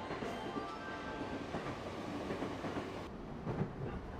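Footsteps shuffle as passengers step onto a train.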